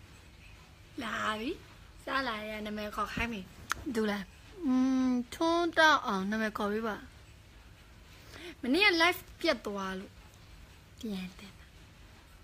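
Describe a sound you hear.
A young woman talks close to a phone microphone with animation.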